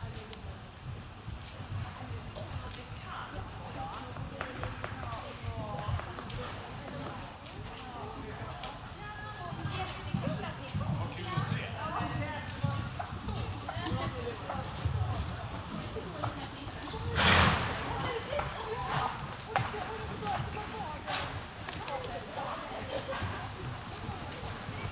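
A horse's hooves thud softly on sand in a large echoing hall.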